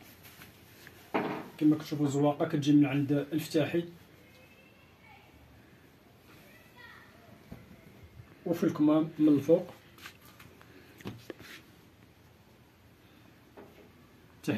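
Fabric rustles as it is folded and spread out.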